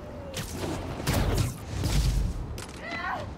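A heavy impact booms with a burst of noise.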